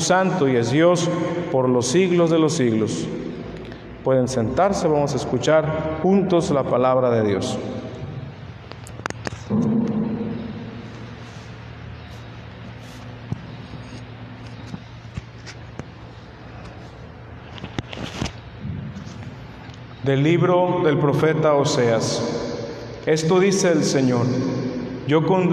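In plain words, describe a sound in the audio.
A man chants in a singing voice through a microphone in an echoing hall.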